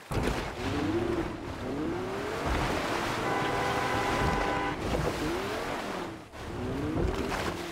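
A car engine roars as a vehicle drives fast.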